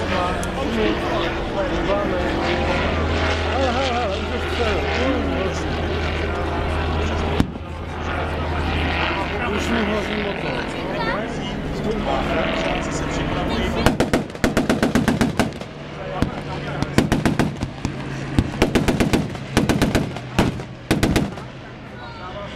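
A small propeller plane's engine drones far overhead, rising and falling.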